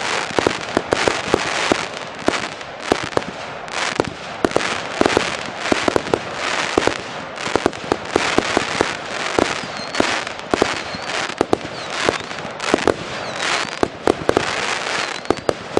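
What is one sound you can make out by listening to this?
Fireworks bang and pop in rapid bursts.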